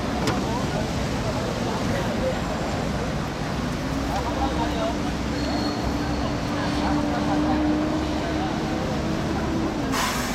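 Traffic rumbles steadily along a busy city street.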